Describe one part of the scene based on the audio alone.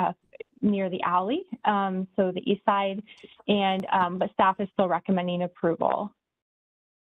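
A man speaks calmly through an online call, his voice somewhat muffled.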